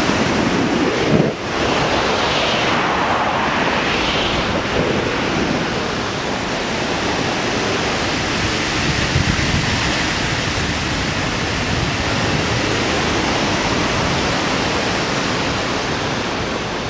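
Wind rushes over a microphone in flight.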